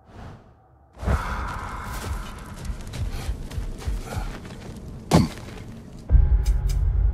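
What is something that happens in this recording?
Heavy footsteps thud quickly across sand.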